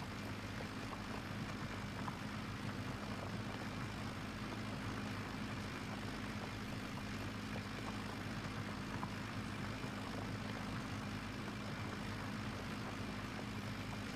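A plough scrapes and rumbles through soil.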